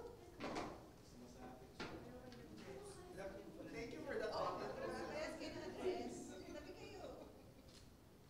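Several adults murmur and chat nearby.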